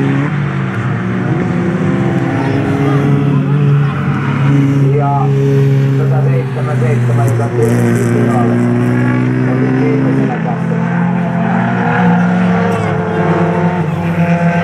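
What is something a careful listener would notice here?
Car engines rise and drop in pitch as the drivers shift gears.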